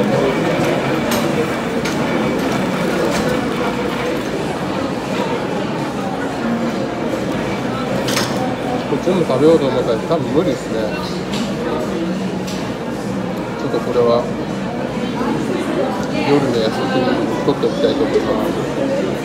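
A crowd murmurs in a busy room.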